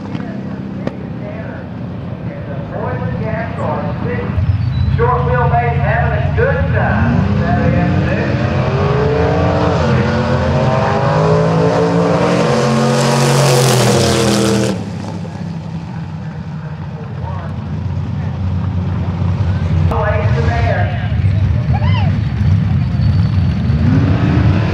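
Engines of race cars idle and rumble at a start line outdoors.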